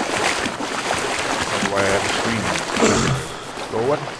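Water splashes as someone wades through a shallow stream.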